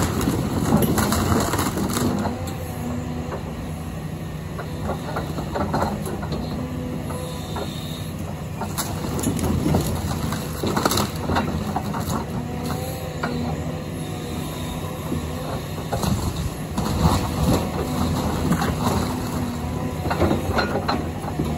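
A heavy excavator engine rumbles steadily nearby.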